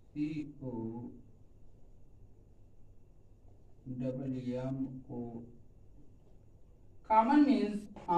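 A man speaks clearly and calmly in short phrases, like a teacher explaining.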